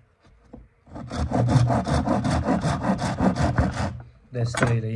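A knife scrapes rapidly along wood.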